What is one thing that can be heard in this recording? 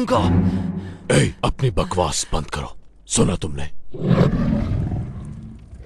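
A man grunts and gasps close by in a struggle.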